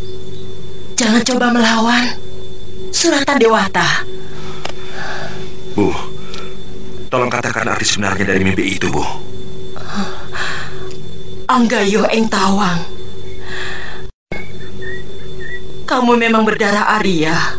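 A woman speaks angrily and tearfully, close by.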